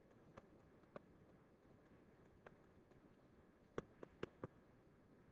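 A pen taps and scratches on a tablet.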